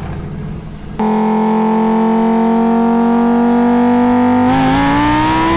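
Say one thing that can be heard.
A sports car engine holds a loud, steady high rev.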